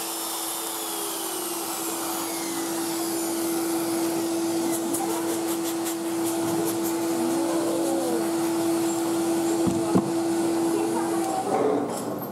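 A dust extractor hums steadily, then stops.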